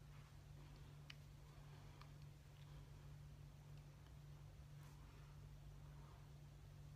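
A makeup brush brushes softly against skin.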